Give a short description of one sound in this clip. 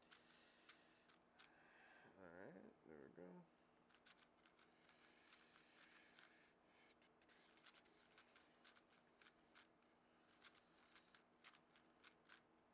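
A puzzle cube clicks and clacks rapidly as its layers are turned.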